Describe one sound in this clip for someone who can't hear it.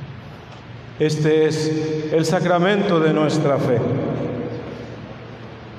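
A man sings a chant through a microphone, echoing in a large hall.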